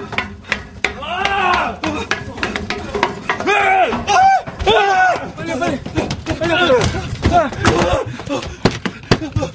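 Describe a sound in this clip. A young man cries out in panic close by.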